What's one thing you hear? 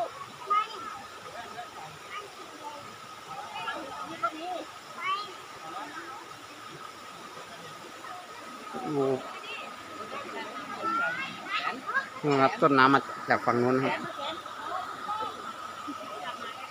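A shallow stream flows and gurgles over rocks.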